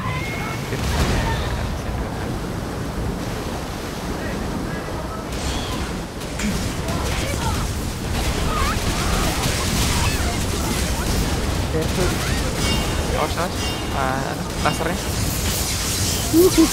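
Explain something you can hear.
Swords slash and magic blasts burst in rapid fighting.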